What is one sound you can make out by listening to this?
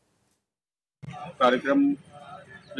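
A middle-aged man speaks calmly into microphones, close by.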